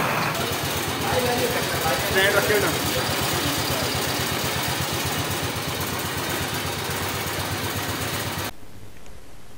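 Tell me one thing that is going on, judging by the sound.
A motorcycle engine idles.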